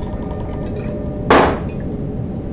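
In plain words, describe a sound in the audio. A glass is set down on a table with a knock.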